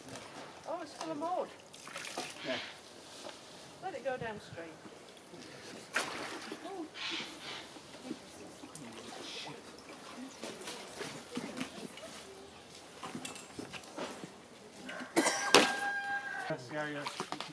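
Water splashes around a man wading through a stream.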